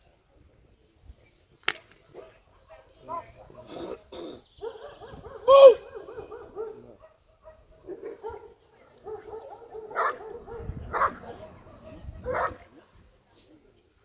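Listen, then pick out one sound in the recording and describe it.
A dog growls while biting.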